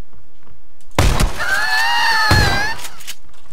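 A shotgun fires loud blasts indoors.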